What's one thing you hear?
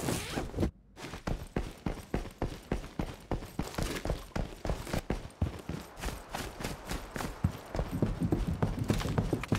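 Footsteps run quickly across hard floors.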